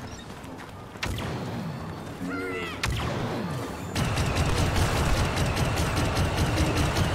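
Laser blasters fire in quick bursts.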